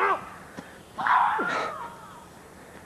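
A man yells out sharply.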